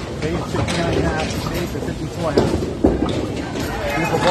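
A bowling ball rolls and rumbles down a wooden lane.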